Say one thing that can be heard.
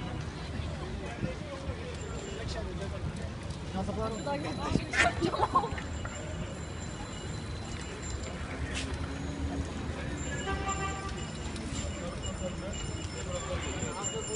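Several men and women chatter nearby outdoors.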